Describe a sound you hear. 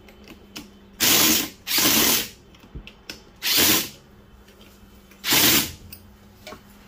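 A power tool whirs in short, loud bursts.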